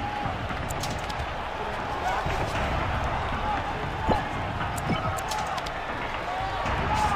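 Punches and knees land with heavy thuds.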